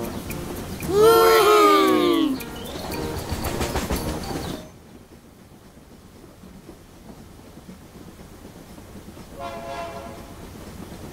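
A toy steam train whistles.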